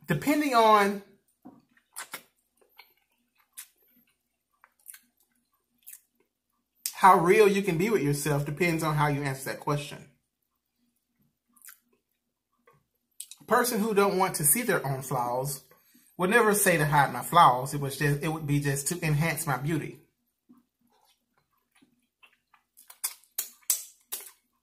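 A man chews and smacks his lips wetly.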